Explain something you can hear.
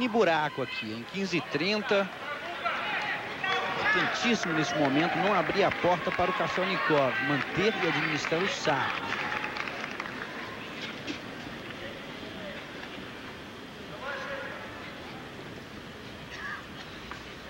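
A large crowd murmurs in a big open stadium.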